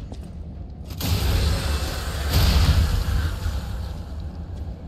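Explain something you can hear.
A sword clashes against a creature with loud metallic impacts.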